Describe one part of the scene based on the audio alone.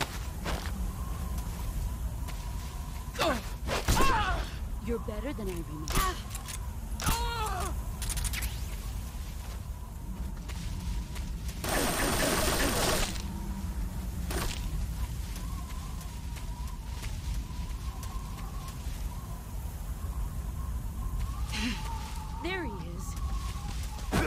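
Grass rustles as a soldier crawls and walks through it.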